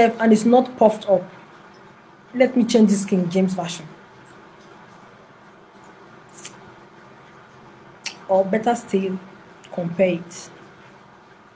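A woman speaks calmly in short phrases close to a microphone.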